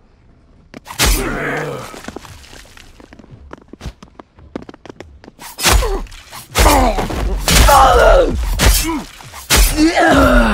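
A weapon strikes a body with heavy wet thuds.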